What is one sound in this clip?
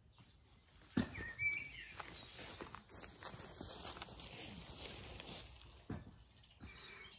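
Footsteps swish through long grass close by.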